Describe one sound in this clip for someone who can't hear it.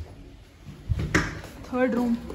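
A door latch clanks.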